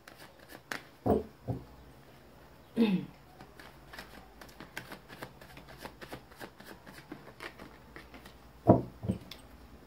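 Cards thump against one another as a deck is tapped.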